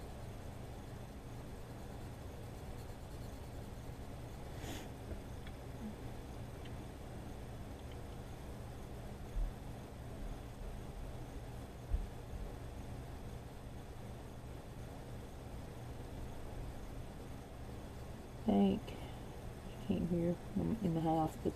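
A coloured pencil scratches softly across paper.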